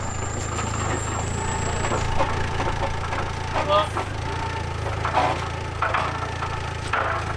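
A forklift engine idles with a steady low rumble.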